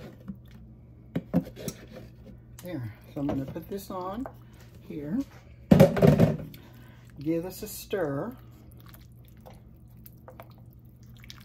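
A wooden spoon stirs a thick stew in a pot, knocking softly against the sides.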